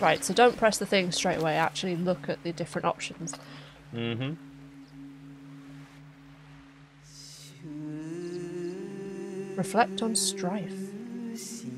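A woman talks with animation through a microphone.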